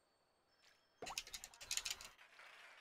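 Water splashes and a reel clicks rapidly as a fish is pulled in.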